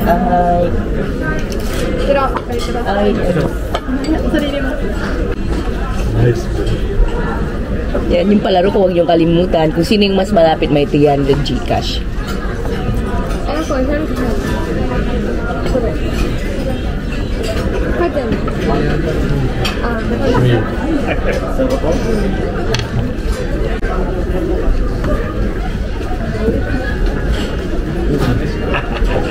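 Cutlery and dishes clink on a table.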